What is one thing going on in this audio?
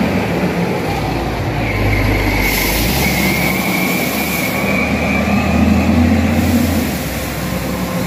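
A heavy truck engine rumbles loudly as it drives past close by.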